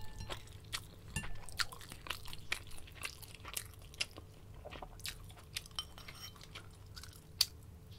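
A woman chews food with soft, wet sounds close to a microphone.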